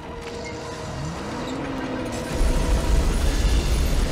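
A truck engine roars and rumbles low.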